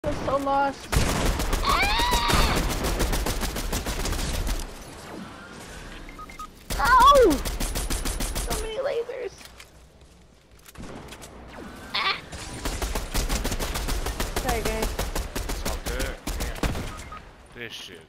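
Rapid rifle gunfire rattles in quick bursts.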